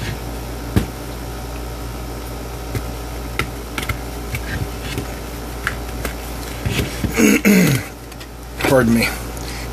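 A rubber case clicks and rubs as it is handled.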